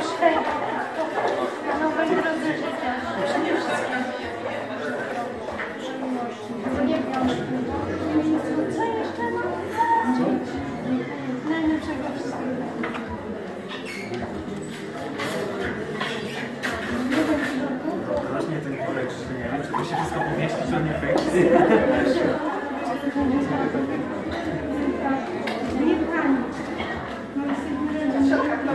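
Several people murmur.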